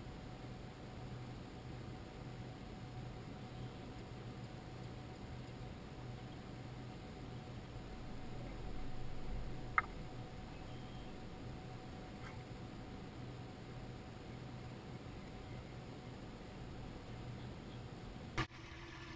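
A boat's engine hums steadily at low speed.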